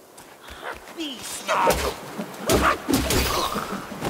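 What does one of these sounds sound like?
A blade swings and strikes with sharp swishes.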